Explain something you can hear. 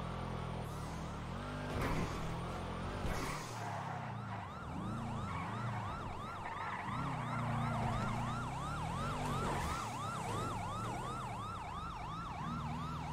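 A sports sedan's engine revs hard as it races and slides.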